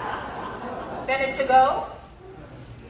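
A woman speaks calmly in a large room.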